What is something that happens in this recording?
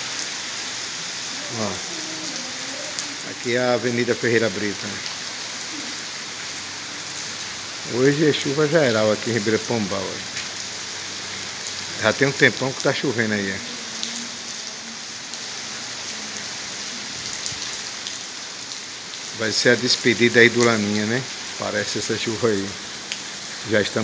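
Steady rain falls and patters on a wet street outdoors.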